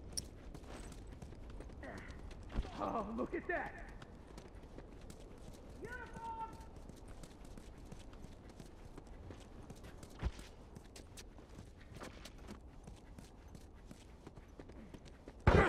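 Footsteps crunch on rubble.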